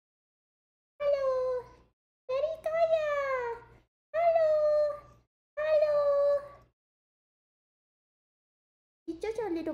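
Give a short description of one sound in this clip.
A cat meows loudly and repeatedly, in long drawn-out cries.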